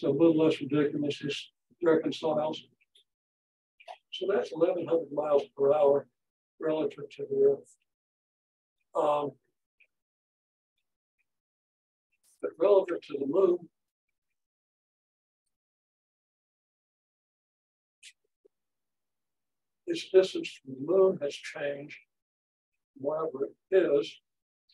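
An elderly man lectures calmly, with pauses.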